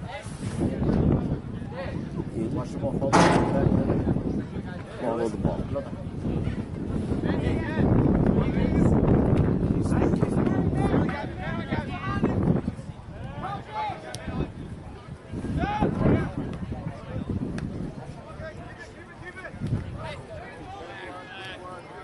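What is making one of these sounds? Soccer players shout to each other across an open field outdoors.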